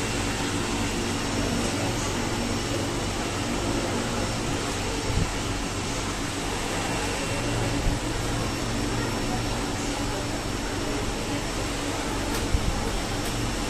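A machine hums steadily nearby.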